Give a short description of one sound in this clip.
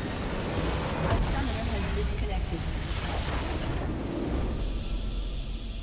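A huge explosion booms and rumbles in a video game.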